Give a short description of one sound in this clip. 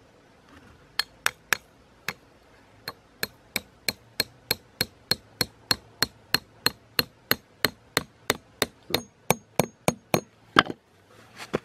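A hammer taps a metal peg into a cardboard box, with steady repeated blows.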